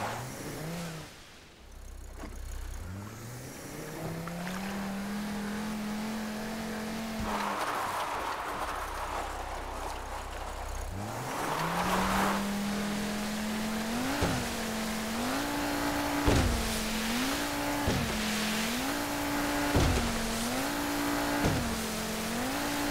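Water splashes and sprays against a boat's hull.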